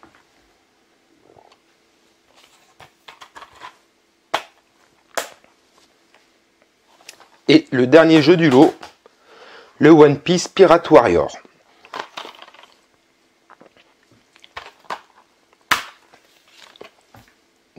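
A plastic game case clicks and rattles as it is handled.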